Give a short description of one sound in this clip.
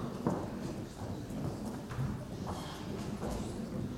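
Footsteps sound on a wooden floor in an echoing hall.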